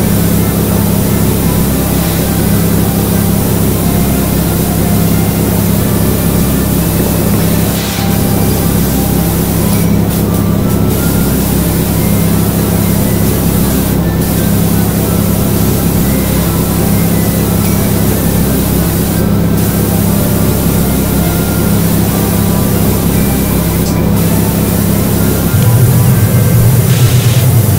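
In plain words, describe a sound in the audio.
A pressure washer sprays water with a steady hiss.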